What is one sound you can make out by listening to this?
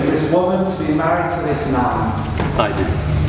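An elderly man speaks calmly in a large echoing hall.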